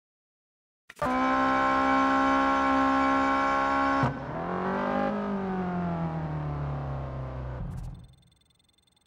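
A sports car engine idles and revs up.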